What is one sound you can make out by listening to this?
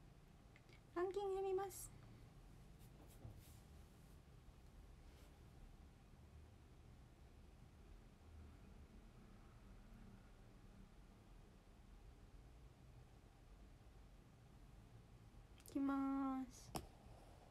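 A young woman speaks briefly in a high voice, close by.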